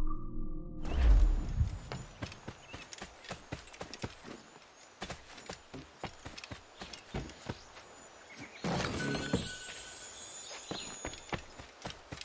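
Footsteps tread quickly over grass and wooden boards.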